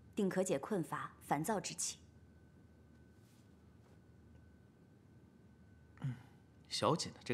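A young woman speaks calmly and softly nearby.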